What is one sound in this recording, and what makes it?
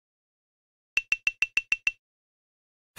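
Quick electronic ticks count up in a fast run.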